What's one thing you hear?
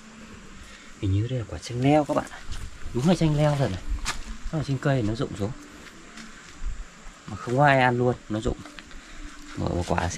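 A young man talks with animation close to a clip-on microphone, outdoors.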